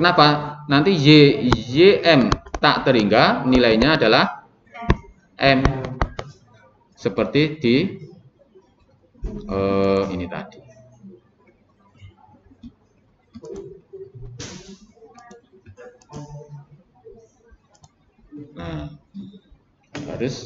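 A young man talks calmly and explains, heard through a close microphone.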